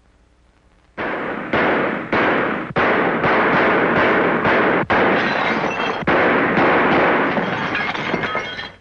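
Window glass cracks and shatters.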